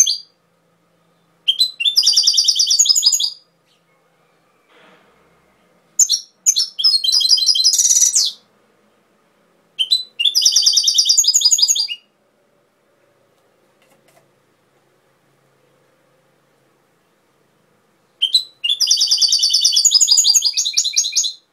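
A small songbird sings close by in bursts of rapid, bright twittering trills.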